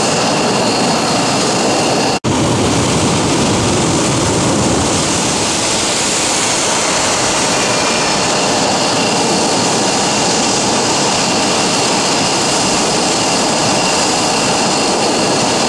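A jet engine roars loudly and steadily close by, with a high whine.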